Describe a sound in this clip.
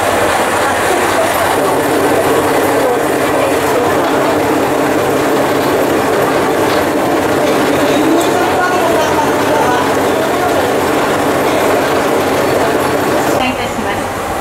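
A train rolls slowly along a platform with a steady rumble.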